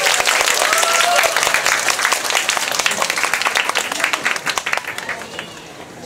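Loud pop music plays.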